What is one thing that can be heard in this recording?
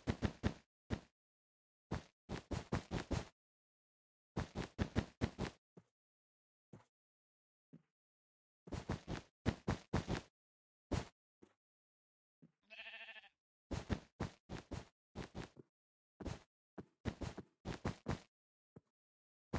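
Wool blocks are placed with soft, crunchy thumps in a video game.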